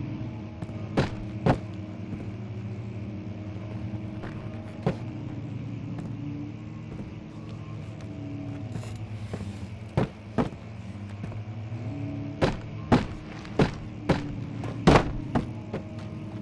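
A wooden crate knocks and thuds against walls and the floor.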